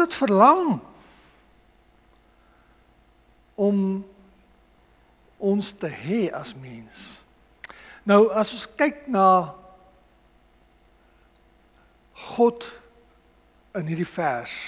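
A middle-aged man speaks slowly and deliberately through a microphone, with long pauses, in an echoing room.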